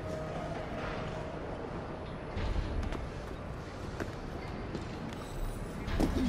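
Hands scrape and grip a brick wall while climbing.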